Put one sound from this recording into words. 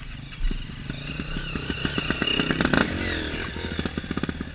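A second dirt bike passes close by.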